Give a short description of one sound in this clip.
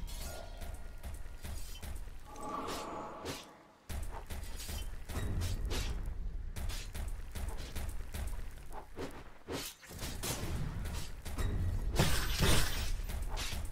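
Magic spells whoosh and crackle in bursts.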